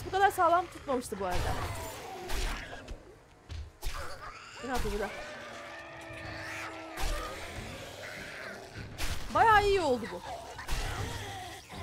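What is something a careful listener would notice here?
A knife strikes flesh with wet thuds.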